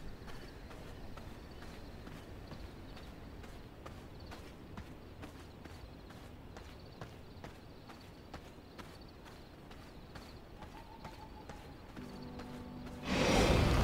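Footsteps fall at an even pace on hard ground.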